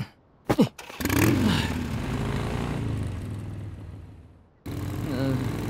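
A scooter engine buzzes as it drives off.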